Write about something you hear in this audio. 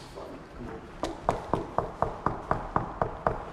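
A young man knocks repeatedly on a door.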